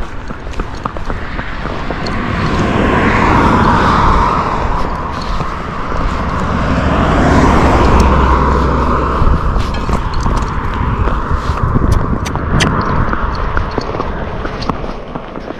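Wind buffets loudly outdoors, rising and falling.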